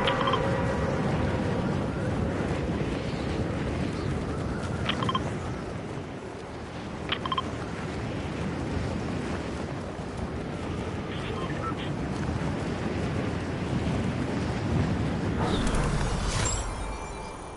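Wind rushes loudly past a skydiver in free fall.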